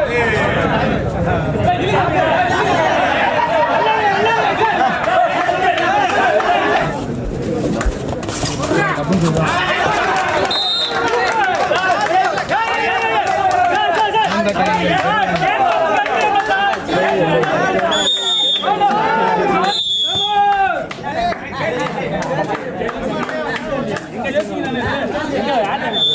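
A large crowd shouts and cheers loudly.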